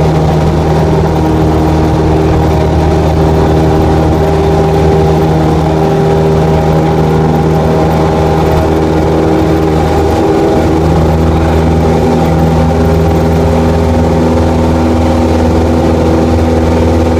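A single-engine propeller plane roars at full power on its takeoff roll, heard from inside the cockpit.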